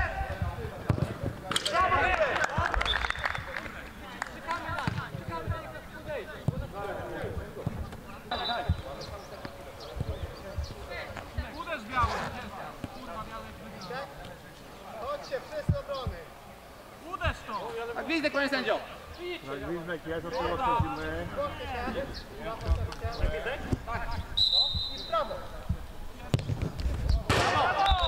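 A football is kicked with dull thumps.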